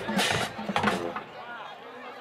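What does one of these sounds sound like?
A marching band blasts short, loud chords outdoors.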